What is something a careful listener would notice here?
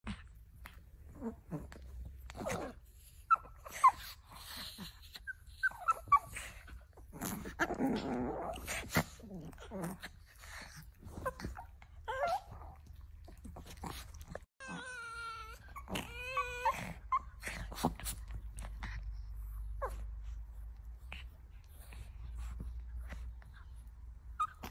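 Small dogs growl and snarl while play-fighting close by.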